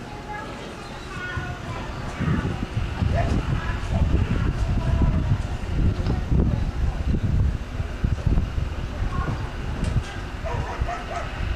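Adult men and women chat casually nearby outdoors.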